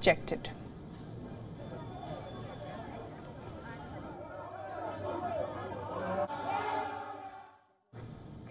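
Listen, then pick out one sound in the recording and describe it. A crowd murmurs and shouts.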